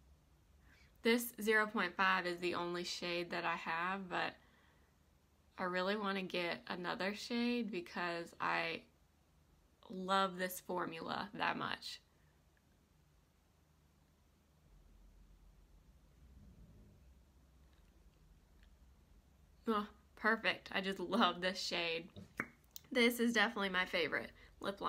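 A young woman talks calmly and close to a microphone, with pauses.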